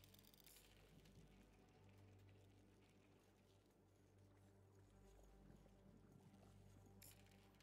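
A fishing reel winds in line.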